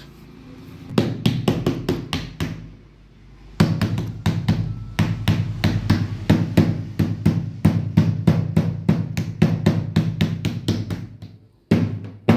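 A mallet taps rapidly on the tops of metal battery cells.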